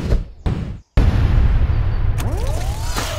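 Upbeat game music plays loudly.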